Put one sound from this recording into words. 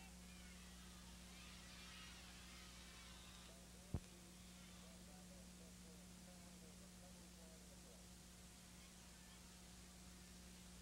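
A crowd cheers faintly from the stands.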